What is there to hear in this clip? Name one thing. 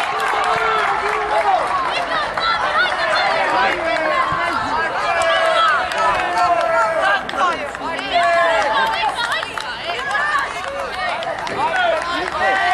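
A group of young boys shout and cheer excitedly outdoors.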